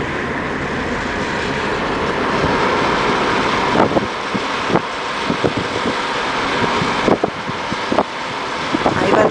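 A car drives steadily along a road, its engine and tyres humming.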